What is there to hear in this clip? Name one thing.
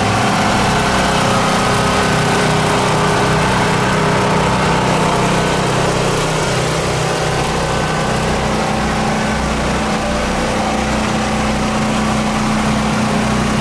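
A truck engine rumbles steadily close by.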